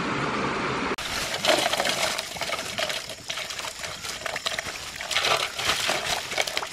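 Water pours and splashes into a metal basin.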